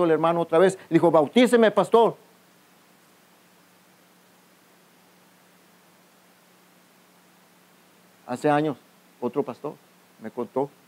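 A middle-aged man speaks calmly through a microphone, with pauses between phrases.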